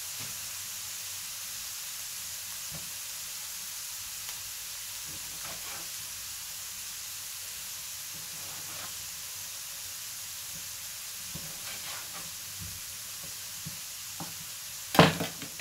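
Food sizzles and crackles in a hot frying pan.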